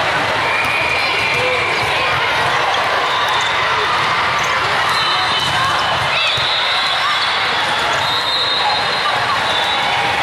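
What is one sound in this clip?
A volleyball thuds as players hit it.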